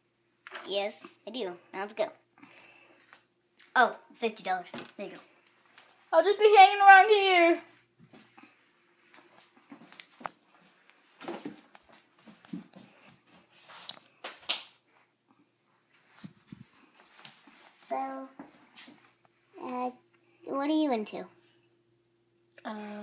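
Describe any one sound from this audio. A young girl talks in high, playful voices close by.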